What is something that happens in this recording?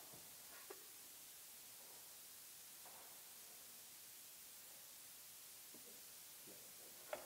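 A man makes short, soft sounds into his cupped hands in a large echoing hall.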